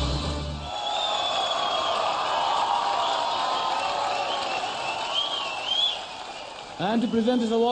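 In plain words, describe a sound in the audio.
An audience applauds.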